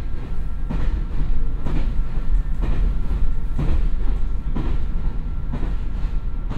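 A diesel train engine idles with a low, steady rumble and a regular throb.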